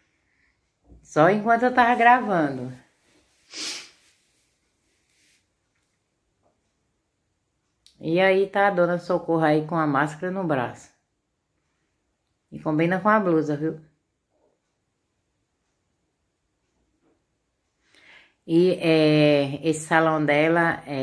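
An older woman sings in short phrases close by.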